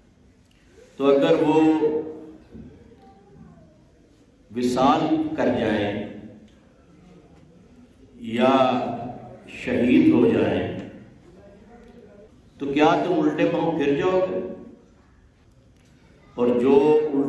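An elderly man speaks slowly and solemnly into a close microphone, in short phrases with pauses.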